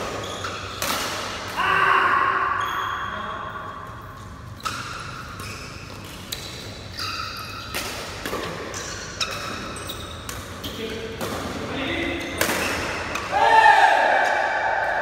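Rackets smack a shuttlecock back and forth in sharp hits.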